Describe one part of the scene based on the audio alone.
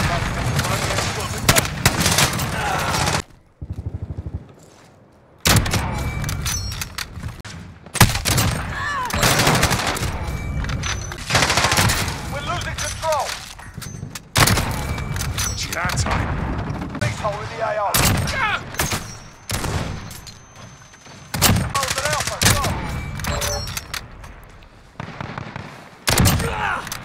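Sniper rifle shots crack loudly, one after another.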